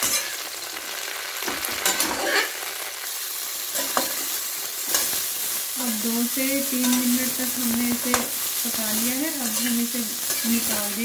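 Food sizzles softly in a hot pan.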